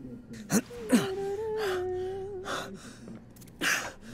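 A body falls and thuds onto a wooden floor.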